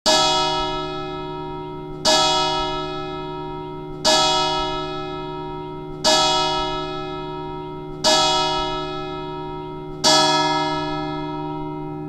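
A large church bell tolls slowly, each stroke ringing out and fading.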